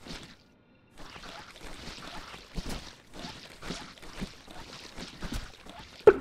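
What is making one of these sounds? Wet gore splatters and squelches.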